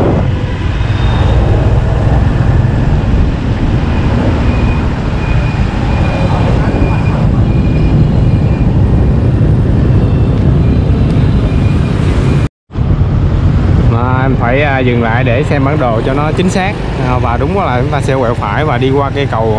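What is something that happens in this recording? Wind rumbles steadily while riding along a road.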